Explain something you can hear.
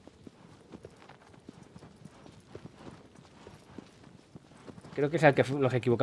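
A horse's hooves gallop steadily over soft ground.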